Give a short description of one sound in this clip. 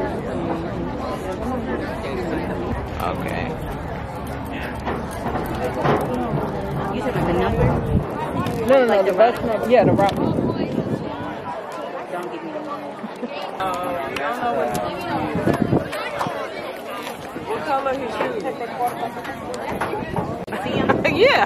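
Young boys and men chatter and call out nearby outdoors.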